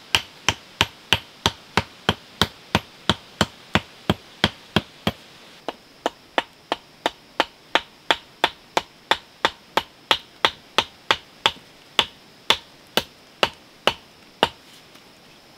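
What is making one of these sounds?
A digging tool strikes hard soil in a fast, steady rhythm.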